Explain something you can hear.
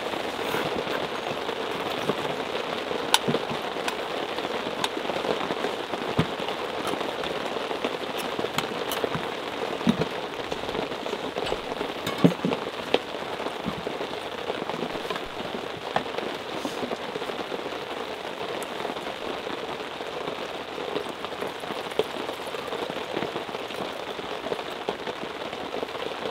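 Rain patters steadily on a tarp overhead.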